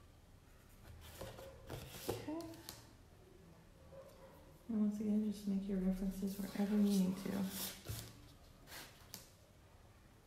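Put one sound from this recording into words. A plastic ruler taps and slides on paper.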